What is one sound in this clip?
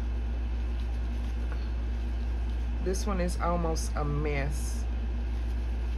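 A paper tissue rustles as it rubs against glass.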